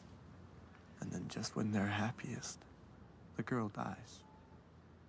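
A young man speaks quietly nearby.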